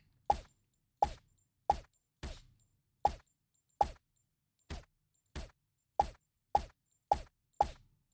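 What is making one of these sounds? A silenced pistol fires sharp, muffled shots in a quick, steady series.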